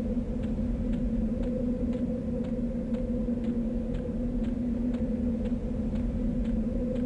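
Footsteps tread on grass at an even walking pace.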